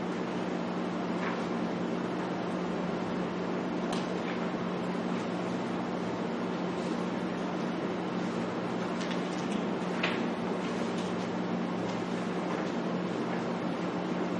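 Pages rustle as people turn them.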